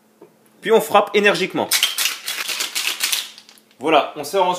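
Ice rattles hard inside a metal cocktail shaker.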